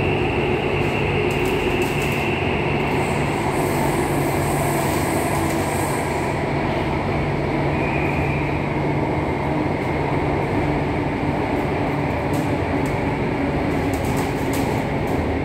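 A subway train rumbles and hums steadily as it runs along the track.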